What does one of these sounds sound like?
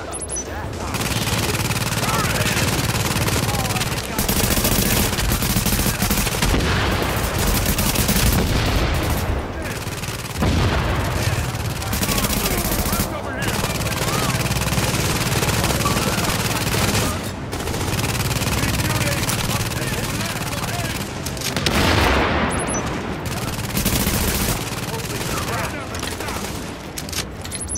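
Rifles fire in rapid bursts nearby.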